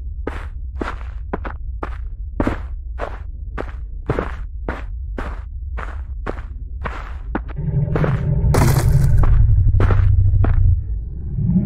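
Footsteps crunch through dry leaves and undergrowth at a steady walking pace.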